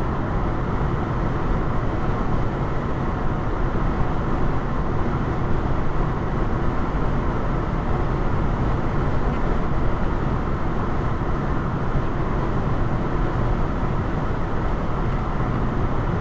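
A car drives steadily along a highway with a low road rumble and tyre noise from inside the cabin.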